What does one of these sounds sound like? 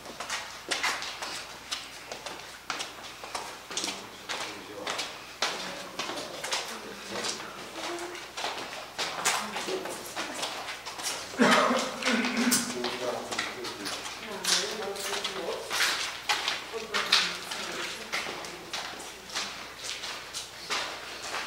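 Footsteps echo on concrete stairs and floors in a large empty building.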